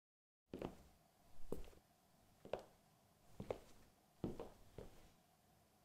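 Footsteps echo slowly across a hard floor in a large empty hall.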